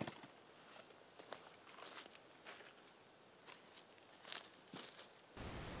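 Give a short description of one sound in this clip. Footsteps rustle through dry leaves on the forest floor.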